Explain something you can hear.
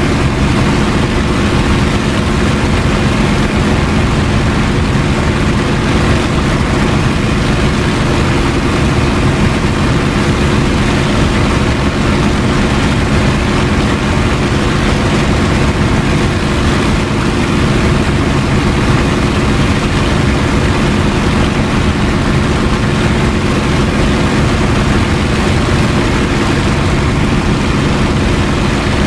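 A propeller aircraft engine drones loudly and steadily from close by.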